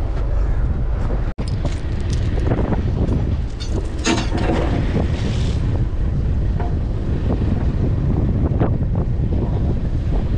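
Wind buffets loudly against the microphone outdoors.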